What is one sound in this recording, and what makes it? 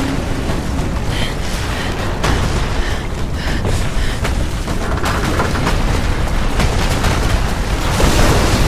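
Strong wind howls steadily outdoors.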